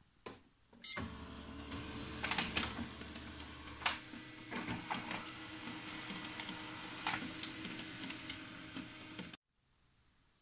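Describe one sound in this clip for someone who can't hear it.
A laser copier whirs as it makes a copy.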